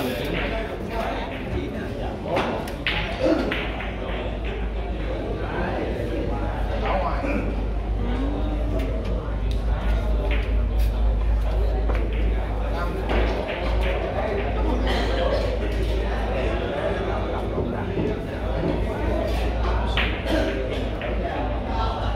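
Men talk quietly in the background of a large room.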